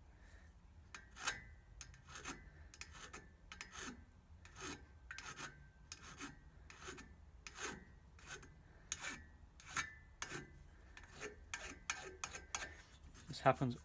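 A metal blade scrapes against metal in short, repeated strokes.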